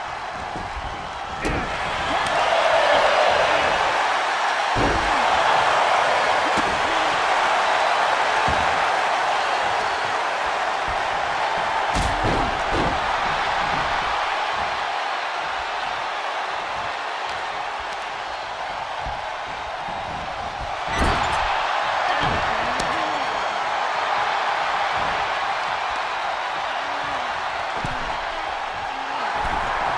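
A large crowd cheers and roars throughout.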